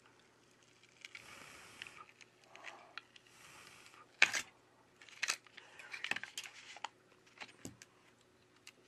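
Plastic film crinkles and peels as a battery is pulled free.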